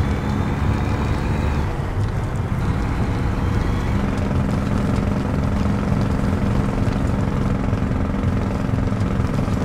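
Tyres crunch over a dirt road.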